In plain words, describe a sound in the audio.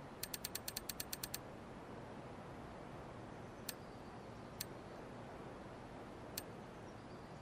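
Short menu clicks tick, first in a quick burst and then one at a time.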